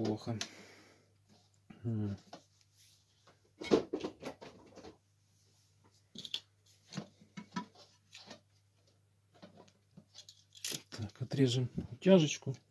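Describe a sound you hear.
Small plastic parts click and rustle as wires are handled close by.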